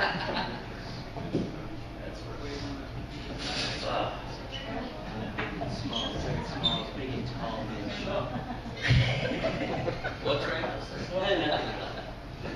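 A drum kit is struck.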